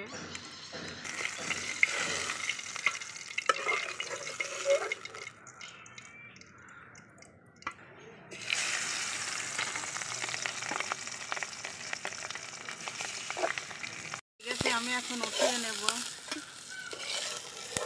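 Fish sizzles and crackles in hot oil.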